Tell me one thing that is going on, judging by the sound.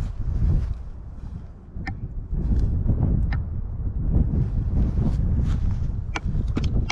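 Wind gusts and rumbles against the microphone outdoors.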